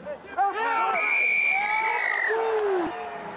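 A referee's whistle blows loudly, long and shrill.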